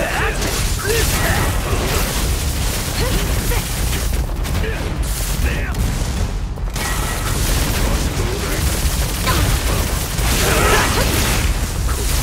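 Blades slash and swoosh through the air.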